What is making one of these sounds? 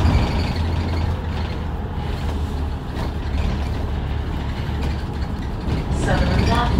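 A vehicle's engine rumbles low while driving along a road.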